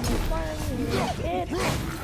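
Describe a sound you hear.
An axe whooshes through the air and strikes.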